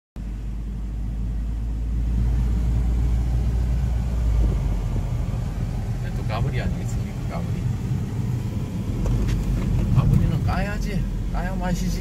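A small car's engine hums steadily from inside the cabin.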